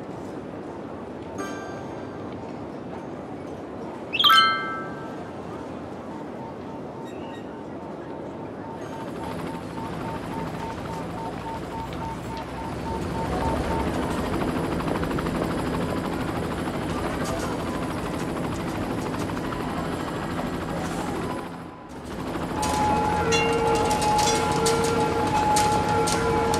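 Traffic hums steadily in a busy city.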